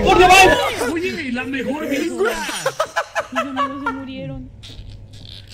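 A young man talks excitedly and laughs close to a microphone.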